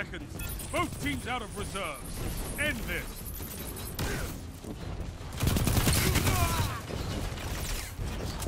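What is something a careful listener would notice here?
An energy rifle fires bursts of shots in a video game.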